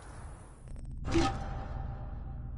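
A soft whoosh sounds as a game menu opens.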